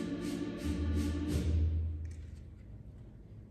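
A choir sings a final chord that rings out and fades in a large echoing hall.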